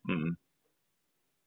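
A middle-aged man speaks calmly over a radio broadcast.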